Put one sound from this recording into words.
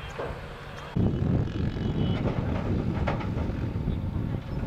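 Motorcycle engines rumble in the distance.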